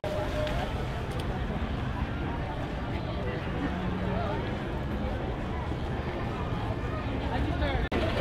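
A large crowd chatters all around outdoors.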